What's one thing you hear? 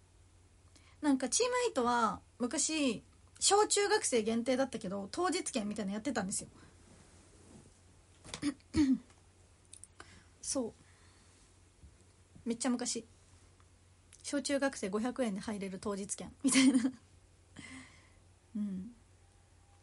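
A young woman talks casually and close to a microphone.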